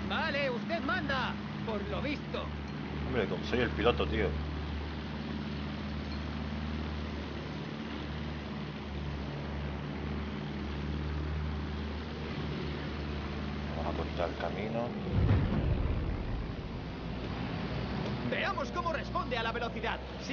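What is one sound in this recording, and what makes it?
A biplane's engine drones steadily.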